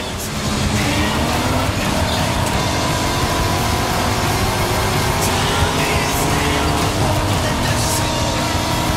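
Tyres crunch and skid on a gravel road.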